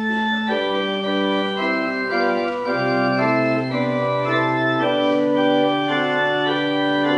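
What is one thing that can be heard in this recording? A pipe organ plays slow, sustained chords that echo in a large hall.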